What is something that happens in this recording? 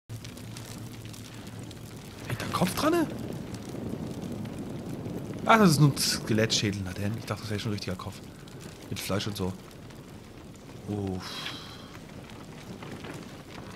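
Fire crackles and pops steadily.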